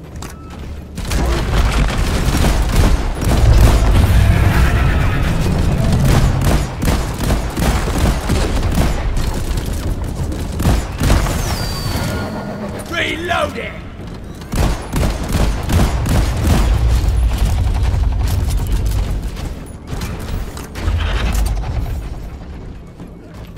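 Rapid gunfire blasts loudly and repeatedly.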